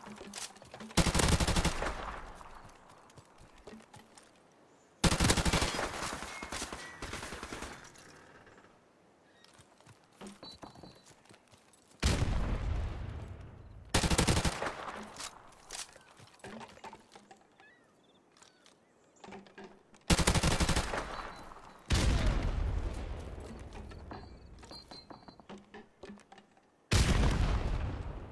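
Rapid bursts of gunfire crack out and echo away, again and again.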